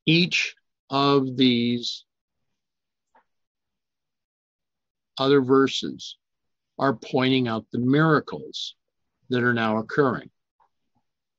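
An older man speaks calmly over an online call, in short bursts with pauses.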